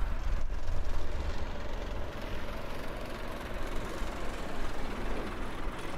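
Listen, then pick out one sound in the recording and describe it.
A truck engine idles nearby with a low rumble.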